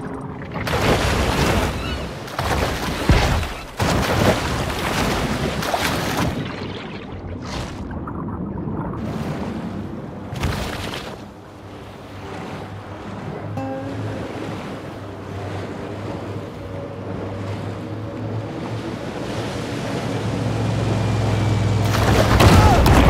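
Water splashes and churns as a large fish swims at the surface.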